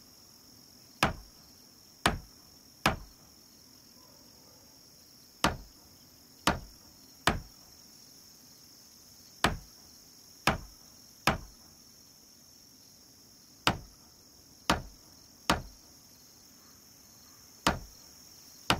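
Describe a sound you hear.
Heavy blows thud sharply in quick groups of three.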